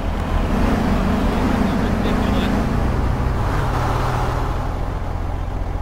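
A car drives past and fades away.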